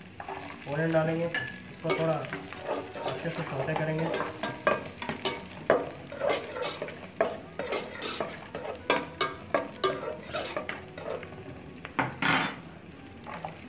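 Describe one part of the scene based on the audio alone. A metal spoon scrapes and taps against a metal pot.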